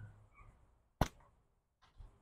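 A slingshot snaps as a shot is released.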